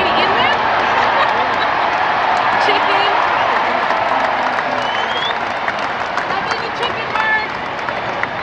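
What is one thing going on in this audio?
Many people in the crowd shout and whistle.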